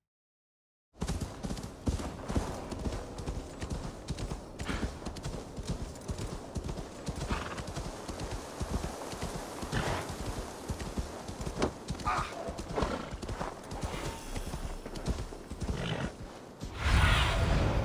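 A horse's hooves crunch steadily through snow.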